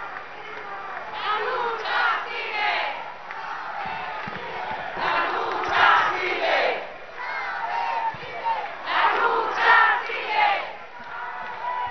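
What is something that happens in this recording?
A group of men and women sings together through loudspeakers outdoors.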